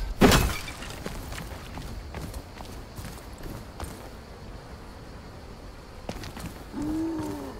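Footsteps run over stone ground.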